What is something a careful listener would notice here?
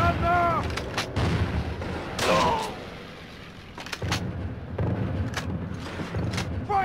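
Rifle shots crack one after another.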